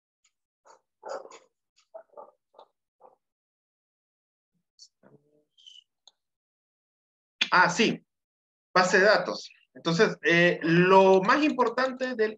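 A woman speaks through an online call.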